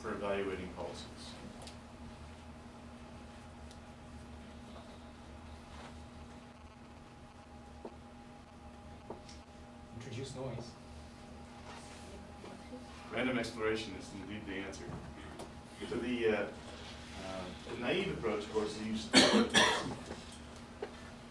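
A man speaks calmly to an audience, in a room with some echo.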